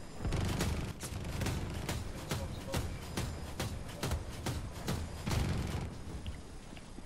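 Explosions and gunfire boom and crack rapidly.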